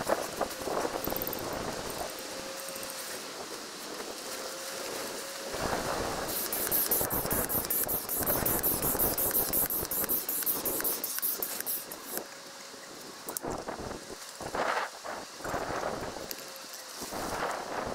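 Tent fabric rustles and flaps as it is handled.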